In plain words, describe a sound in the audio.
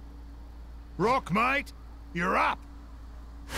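A man shouts with animation.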